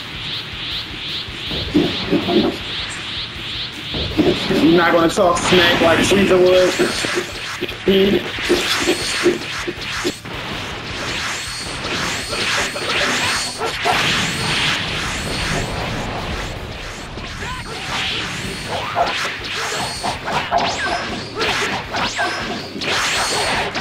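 Punches and kicks thud in quick bursts.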